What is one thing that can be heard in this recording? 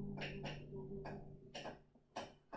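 An acoustic guitar chord rings out and fades.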